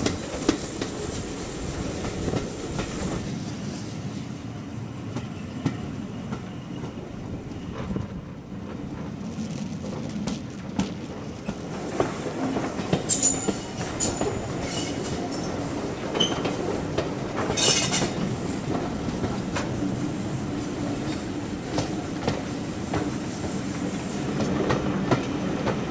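Train wheels rumble and clack steadily on the rails.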